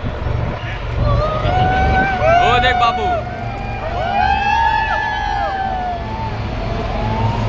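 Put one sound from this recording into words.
A crowd cheers and shouts excitedly.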